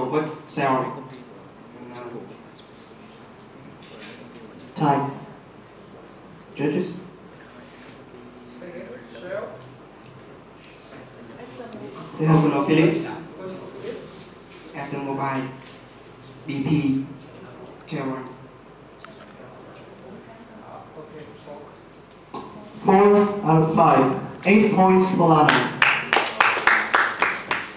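A young man speaks calmly into a microphone, heard over loudspeakers in an echoing hall.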